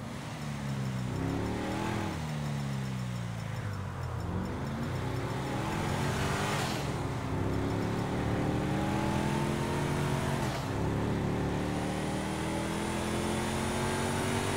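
Tyres roll over a road with a steady rush.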